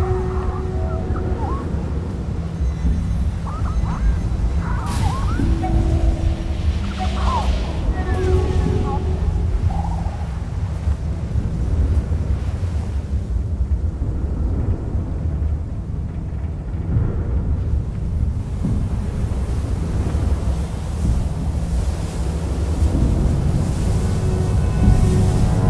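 Sand hisses as something slides down a dune.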